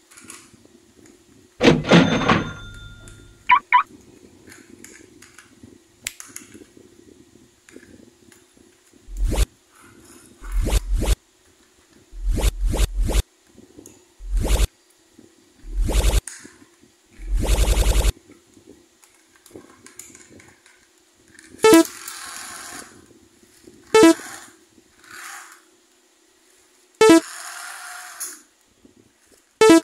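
Plastic toy train parts click and snap together in someone's hands.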